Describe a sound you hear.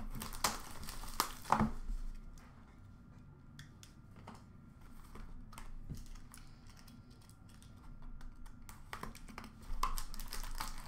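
Hands handle plastic-wrapped boxes, with crinkling and light knocks.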